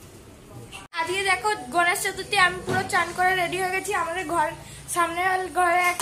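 A young boy talks with animation close to the microphone.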